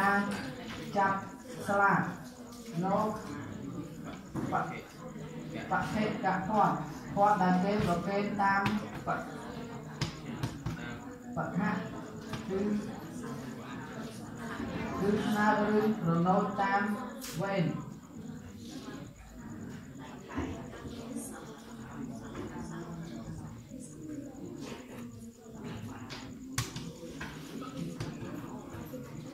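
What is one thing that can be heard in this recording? Young boys murmur and talk quietly nearby.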